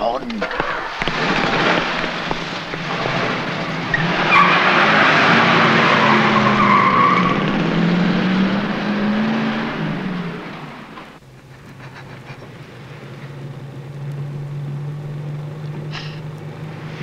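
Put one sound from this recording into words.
A car engine runs and revs.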